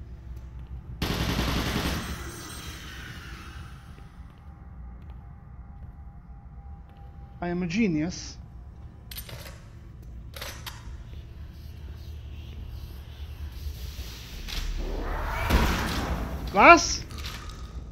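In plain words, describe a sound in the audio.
Gunfire and blasts ring out.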